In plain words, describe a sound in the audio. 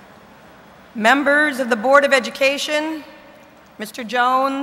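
A woman speaks calmly through a microphone and loudspeakers in a large echoing hall.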